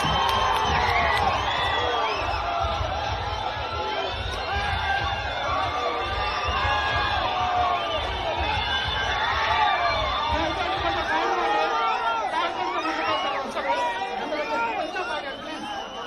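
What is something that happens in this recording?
A large outdoor crowd cheers and shouts loudly.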